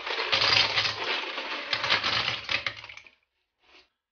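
Clam shells clatter as they tumble into a metal wok.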